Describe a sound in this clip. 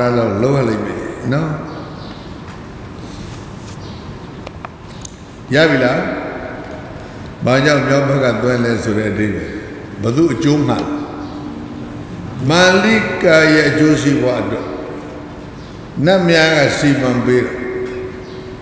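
An elderly man speaks slowly and calmly into a microphone, in bursts with pauses.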